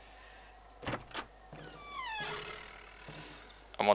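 A wooden door creaks and thuds shut.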